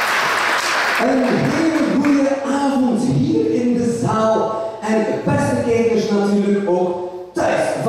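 A man speaks with animation into a microphone, heard over loudspeakers in a large room.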